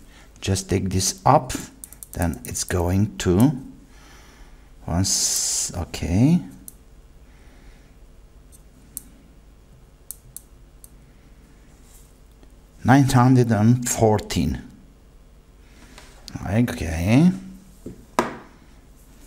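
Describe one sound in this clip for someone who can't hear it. An older man talks calmly and close by, as if explaining.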